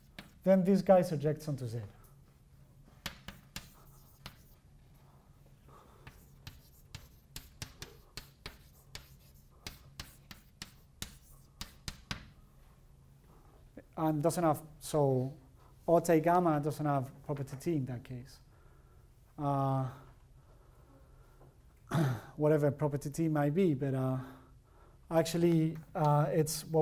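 A man lectures.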